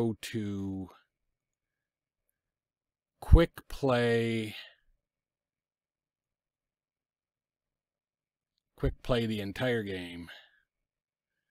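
A man talks with animation close to a microphone, in short bursts with pauses.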